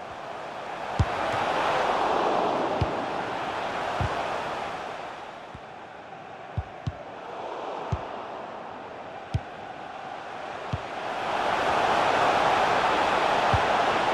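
A football is kicked with sharp thuds now and then.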